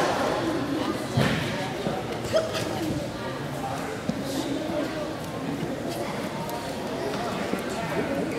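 Two judo players' bare feet shuffle and thump on a mat.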